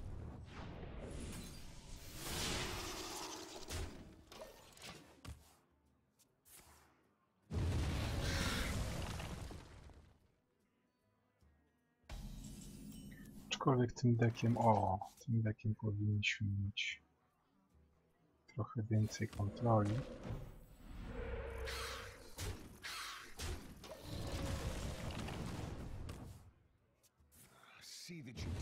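Game chimes and swooshes play as cards are moved.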